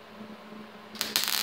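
An electric welding arc crackles and sputters loudly close by.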